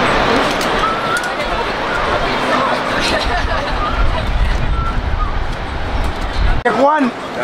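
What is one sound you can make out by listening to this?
A river's rapids roar and churn loudly.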